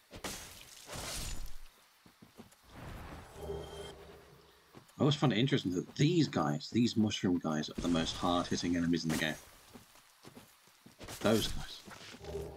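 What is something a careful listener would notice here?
A sword swings and strikes a creature with heavy thuds.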